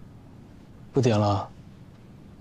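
A young man says a short word close by, softly.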